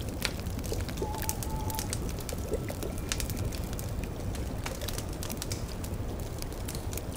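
A cauldron bubbles softly.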